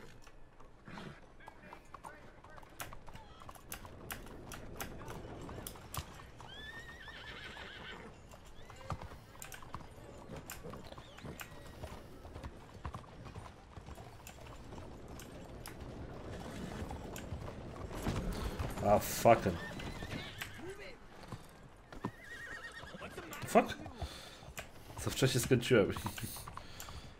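Horse hooves clop on cobblestones.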